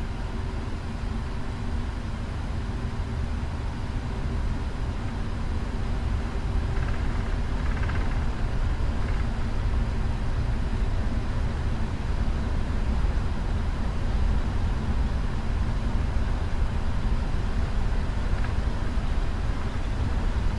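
Jet engines roar steadily, growing louder as a plane speeds down a runway.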